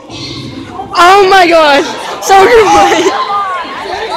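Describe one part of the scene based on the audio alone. Young girls scream and cheer close by.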